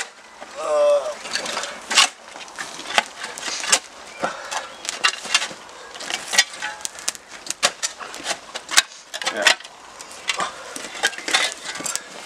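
A metal shovel scrapes and knocks against dirt and stone.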